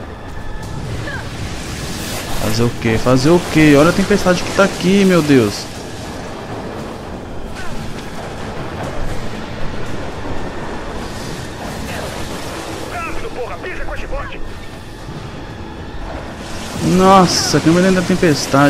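Wind rushes loudly past during a fast fall.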